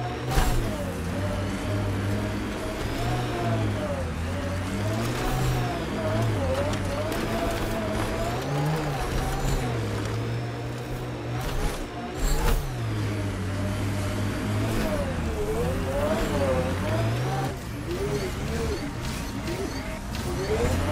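A vehicle engine hums and revs up and down steadily.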